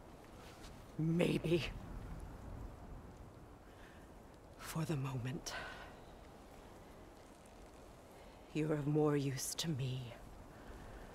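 A young woman speaks calmly and tensely, close by.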